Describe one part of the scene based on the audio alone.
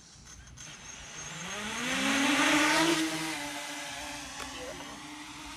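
A small drone's motors spin up with a rising whine as it lifts off.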